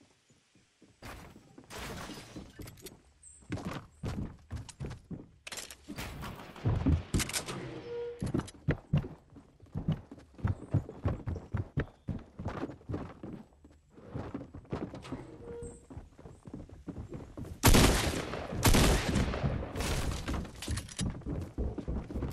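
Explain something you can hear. Footsteps thud quickly on wooden floors and stairs.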